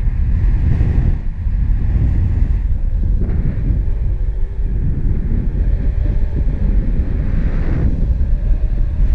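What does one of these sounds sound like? Strong wind rushes and buffets loudly past the microphone.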